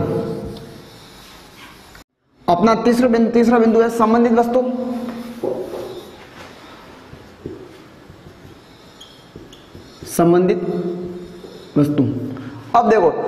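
A young man speaks calmly and clearly, as if teaching, close by.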